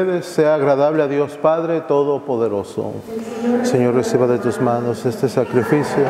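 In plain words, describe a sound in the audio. A man speaks through a microphone in a large echoing hall.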